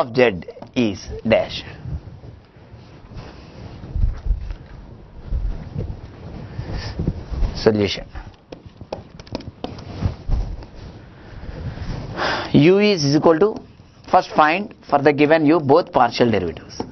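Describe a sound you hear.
A man explains calmly, heard close through a microphone.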